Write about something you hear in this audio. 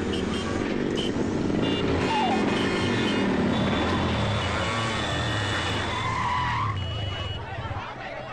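Motorcycle engines rumble together.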